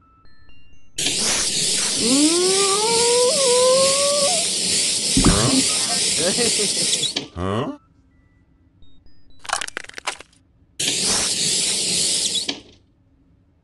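A game on a tablet plays a loud hissing spray.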